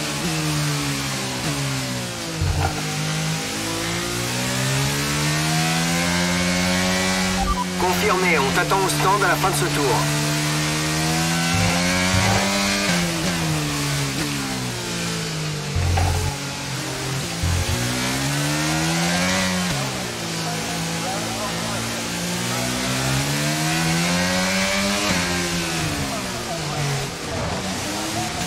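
A racing car engine roars, revving up and dropping with each gear change.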